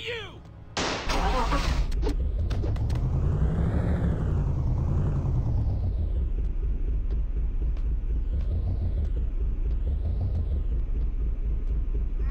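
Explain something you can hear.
Car tyres screech while skidding.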